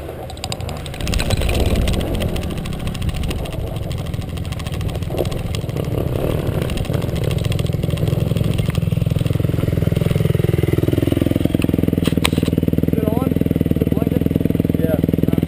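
A motorbike engine roars as the bike rides along.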